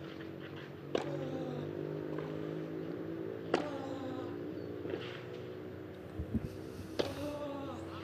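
A tennis ball is struck sharply by a racket, back and forth.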